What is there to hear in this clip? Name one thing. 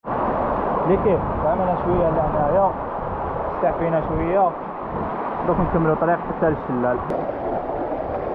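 A young man talks calmly, close by.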